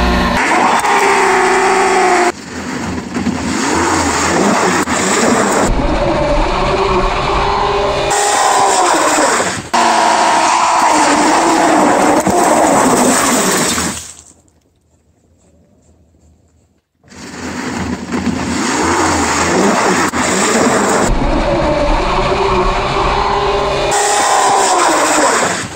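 A motorcycle engine revs hard and loud, rising and falling.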